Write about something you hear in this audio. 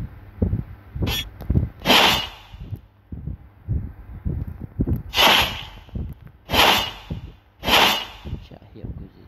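Sword slashes whoosh sharply in short bursts.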